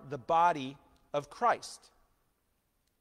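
A middle-aged man speaks calmly to an audience.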